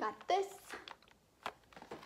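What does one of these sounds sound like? A plastic package crinkles in hands.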